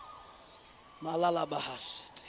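A man speaks loudly in a large room.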